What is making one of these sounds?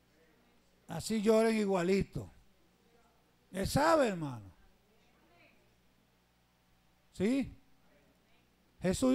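A man preaches with passion through a microphone and loudspeakers, in loud bursts with pauses between.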